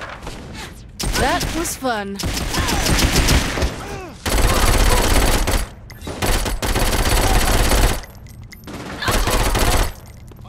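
Rapid gunfire blasts loudly in bursts.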